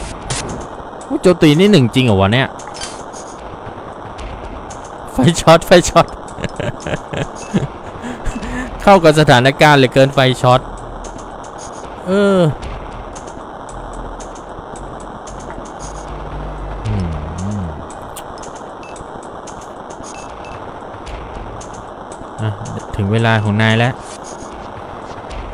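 Short electronic blips sound now and then.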